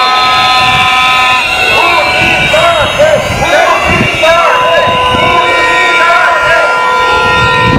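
A large crowd of protesters chants and shouts outdoors.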